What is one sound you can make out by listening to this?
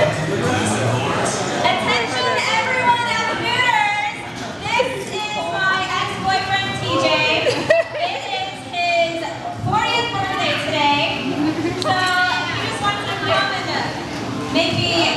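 A young woman talks with animation into a microphone, heard through a loudspeaker in a busy room.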